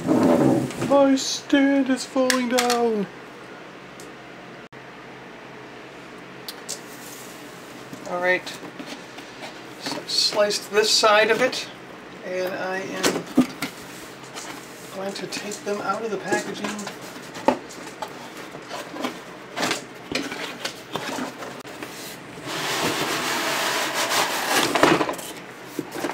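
Cardboard scrapes and rustles as a box is handled.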